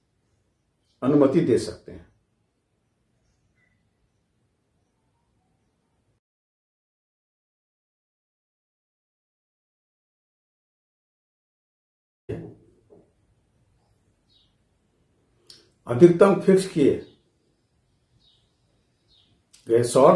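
An elderly man speaks calmly into a close microphone, in short bursts with long pauses.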